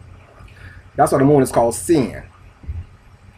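A man speaks briefly and calmly, close to the microphone.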